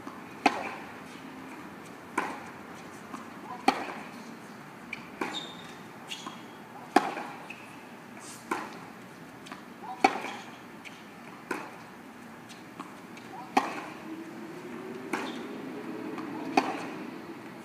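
Tennis rackets strike a ball in a rally, outdoors.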